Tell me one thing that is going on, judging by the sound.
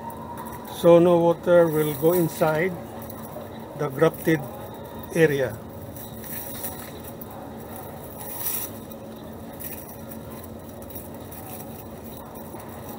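Plastic tape rustles softly.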